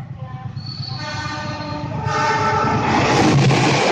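A train horn sounds loudly.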